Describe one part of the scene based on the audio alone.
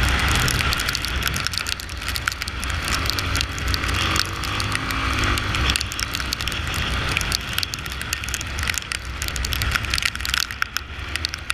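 A motorcycle engine roars steadily up close.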